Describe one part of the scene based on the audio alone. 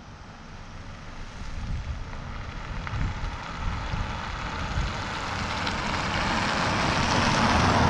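A car approaches along the road and draws closer, its tyres growing louder.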